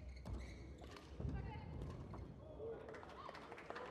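A badminton shuttle is struck sharply by rackets in a rally.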